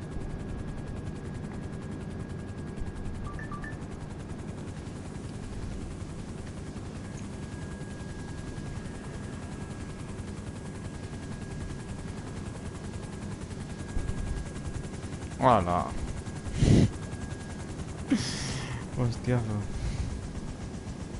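A helicopter's rotor thuds steadily in the distance.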